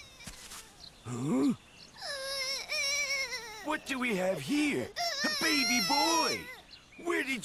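A baby cries loudly.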